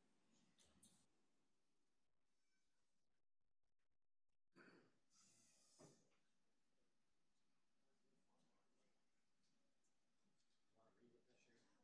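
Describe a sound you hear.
A woman speaks calmly into a microphone in a quiet, slightly echoing room.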